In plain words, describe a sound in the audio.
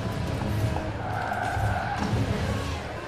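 Tyres screech while sliding on the road.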